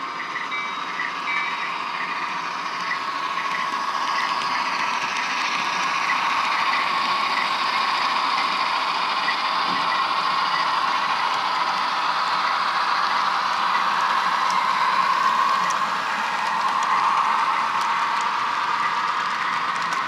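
Small wheels click and rattle over the rails.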